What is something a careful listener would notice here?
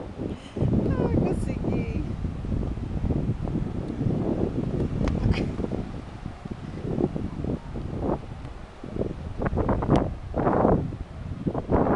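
A young child laughs and shouts playfully.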